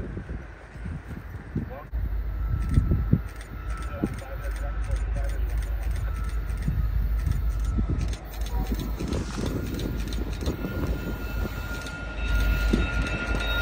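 A diesel freight train rumbles past on the tracks.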